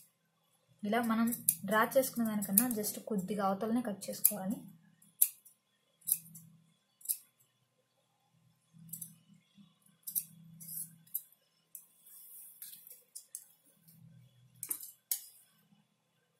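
Scissors snip through stiff paper.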